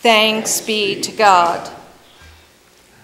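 A woman speaks through a microphone in an echoing hall.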